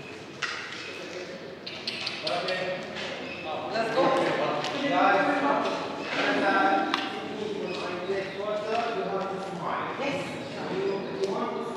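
Adult men and women talk casually nearby, echoing in a large stone hall.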